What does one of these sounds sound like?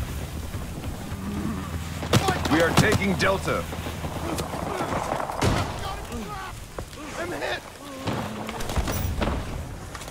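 Explosions boom and crackle nearby.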